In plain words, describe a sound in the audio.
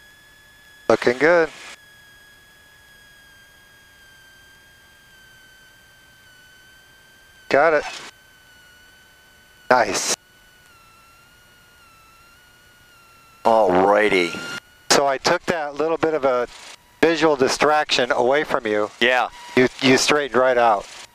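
An aircraft engine drones steadily and slightly rises in pitch.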